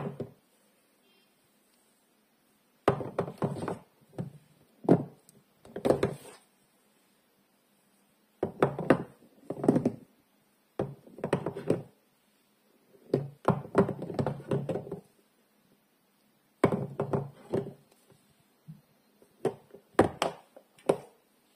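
Hard bars of soap clack and knock against each other in short bursts.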